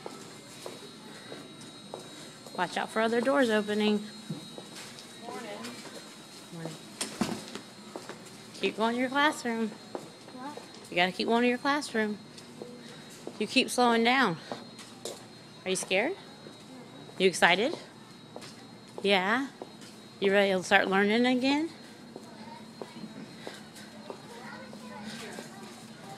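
Small sandals patter on concrete.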